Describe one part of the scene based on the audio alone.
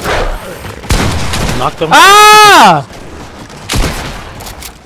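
A shotgun fires with sharp, loud bangs.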